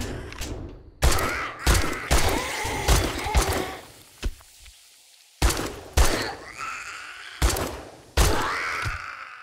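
A gun fires loud single shots in bursts.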